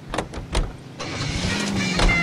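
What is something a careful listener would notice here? A car engine starts and idles.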